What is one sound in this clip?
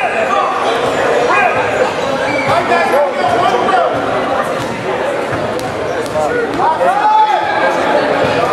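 A crowd of spectators chatters and calls out throughout a large echoing gym.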